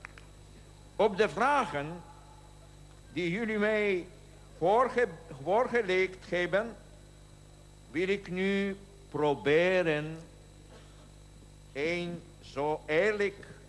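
An elderly man speaks slowly and solemnly into a microphone, carried over loudspeakers.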